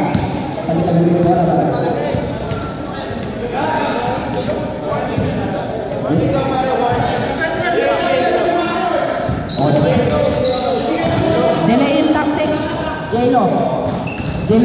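Men talk and call out nearby in a large echoing gym.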